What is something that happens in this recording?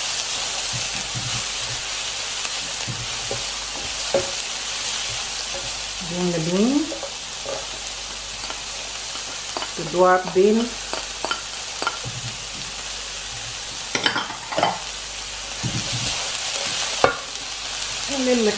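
A spatula scrapes and taps against a pan.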